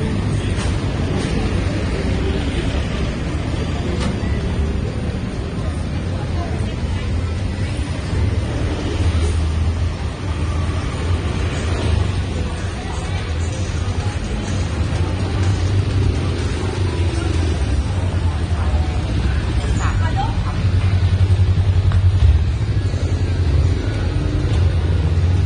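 Street noise hums steadily outdoors.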